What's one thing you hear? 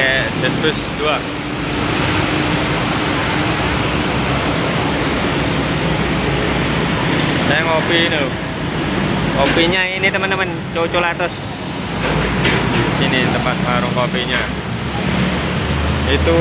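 Heavy traffic rumbles past on a busy street.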